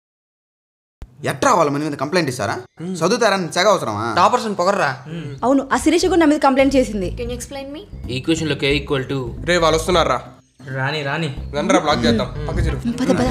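Young men talk with animation close by.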